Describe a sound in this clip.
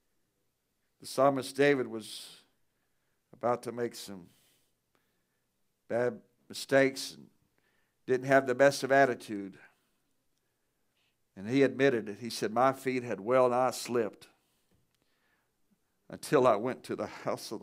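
A man speaks through a microphone in phrases with pauses, echoing slightly in a large room.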